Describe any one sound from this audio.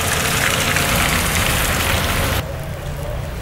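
Car tyres hiss on a wet, slushy road.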